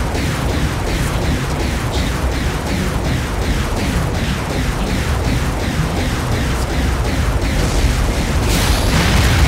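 A heavy gun fires in rapid, steady bursts.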